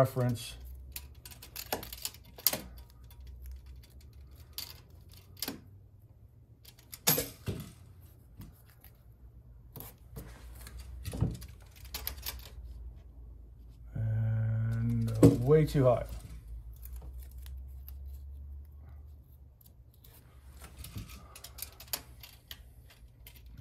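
A tape measure clicks and rattles.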